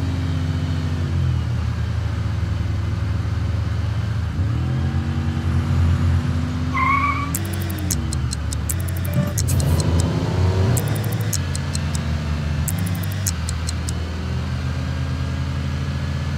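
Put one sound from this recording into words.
A car engine hums, rising and falling in pitch as it drives.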